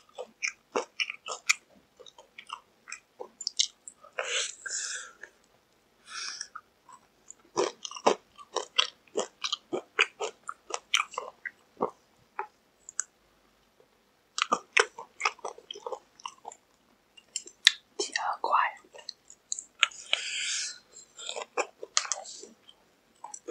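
A young man bites and crunches loudly on crispy fried chicken close to a microphone.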